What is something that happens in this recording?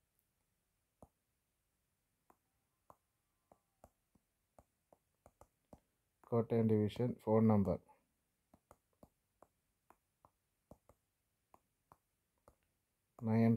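Keys on a touchscreen keyboard tick softly at an uneven pace.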